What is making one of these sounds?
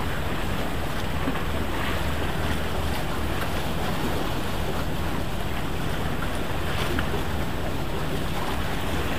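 Wind blows steadily, rumbling outdoors.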